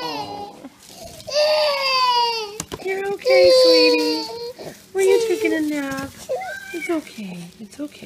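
A toddler cries and whimpers close by.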